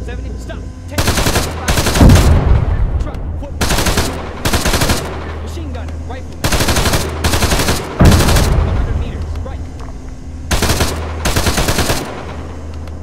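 A heavy cannon fires in rapid bursts.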